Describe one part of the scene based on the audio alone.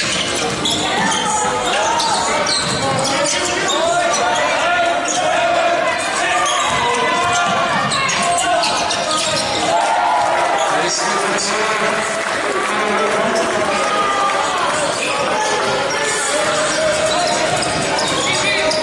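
Sneakers squeak on a wooden court in a large echoing hall.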